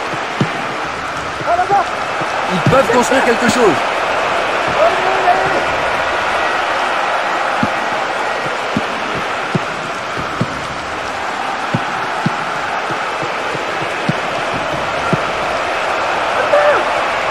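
A football is kicked with dull thumps, again and again.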